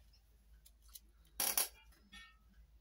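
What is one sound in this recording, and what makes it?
Tissue paper crinkles.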